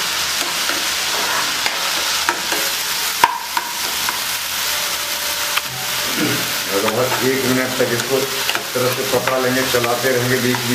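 A spatula scrapes and taps against a pan.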